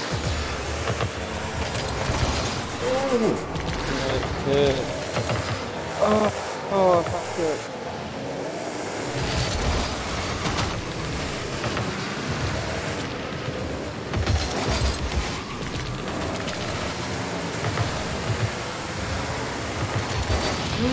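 Game car engines roar and boost throughout.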